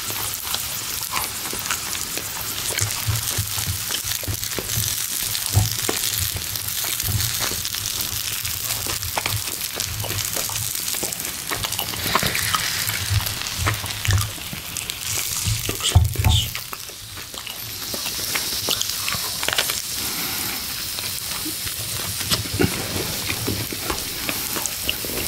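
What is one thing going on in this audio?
Crusty bread crackles and crunches between fingers.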